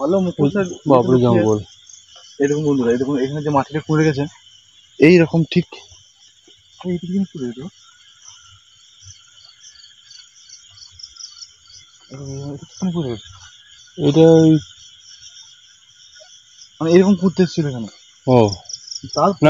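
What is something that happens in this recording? A man talks close by, in short bursts.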